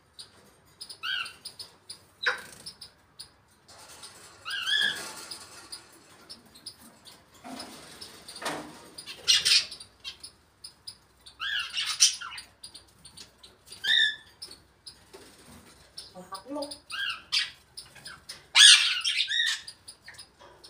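A parrot whistles and chirps in short bursts nearby.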